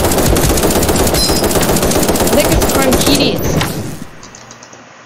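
Rapid gunfire rattles in quick bursts.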